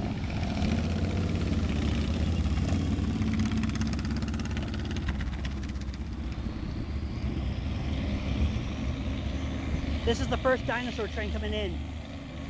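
A diesel locomotive engine rumbles steadily nearby.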